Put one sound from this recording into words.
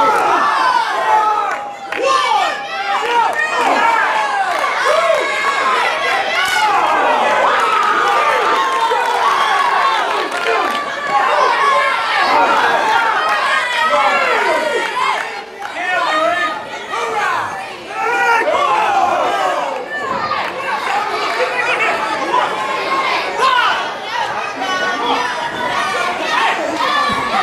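A crowd of children and adults cheers and shouts loudly nearby.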